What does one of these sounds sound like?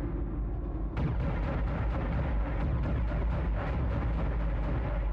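A turret cannon fires bursts of shots.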